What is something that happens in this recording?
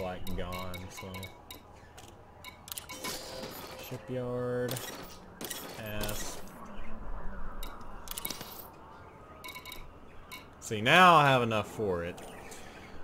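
Electronic menu beeps and chimes sound as options are selected.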